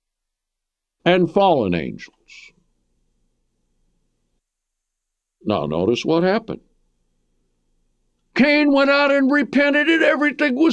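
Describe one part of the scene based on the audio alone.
An elderly man speaks emphatically into a close microphone, with long pauses.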